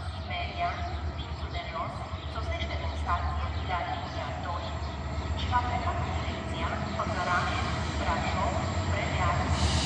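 A train rumbles as it slowly approaches.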